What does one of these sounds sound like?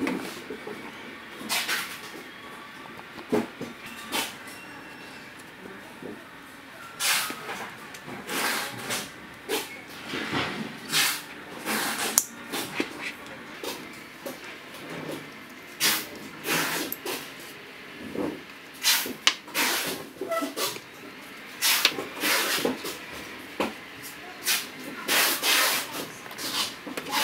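Nylon webbing rustles and swishes as hands handle a strap.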